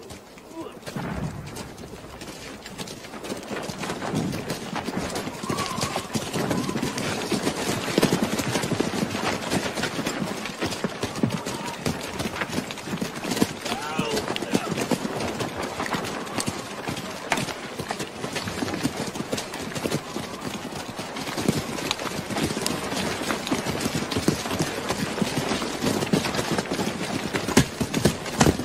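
Rapid gunfire crackles and pops all around.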